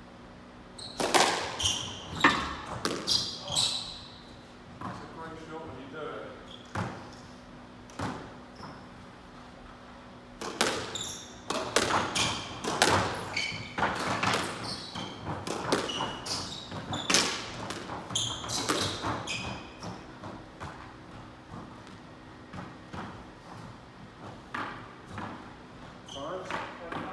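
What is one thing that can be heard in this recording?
A squash ball smacks sharply against the walls, echoing in a hard room.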